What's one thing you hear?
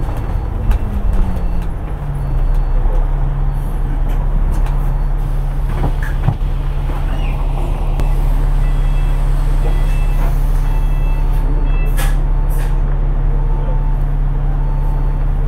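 A bus engine hums and rumbles steadily, heard from inside the bus.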